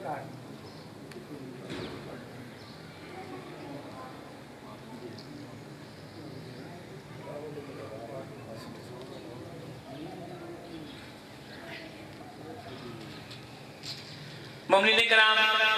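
Men talk quietly in the background.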